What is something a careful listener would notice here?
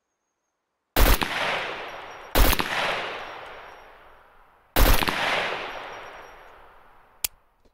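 Rifle shots ring out loudly, each echoing away slowly.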